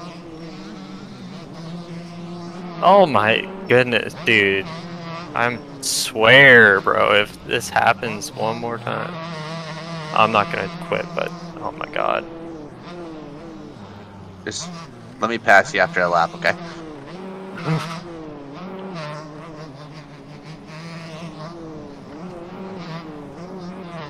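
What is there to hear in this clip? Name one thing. A dirt bike engine revs and whines steadily, rising and falling in pitch.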